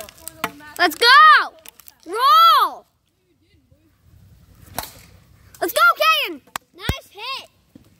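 A bat cracks against a ball outdoors.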